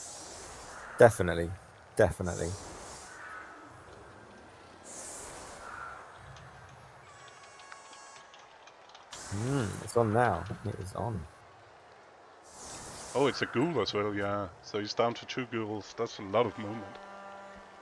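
A young man talks casually into a microphone, close up.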